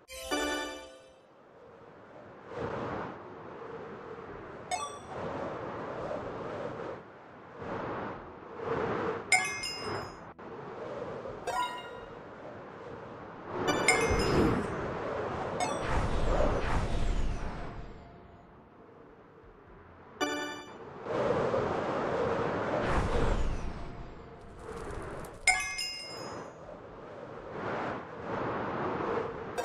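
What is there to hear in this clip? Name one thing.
Wind rushes past in gusts that swell and fade.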